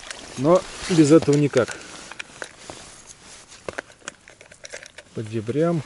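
Plastic fishing lures rattle and click in a plastic box.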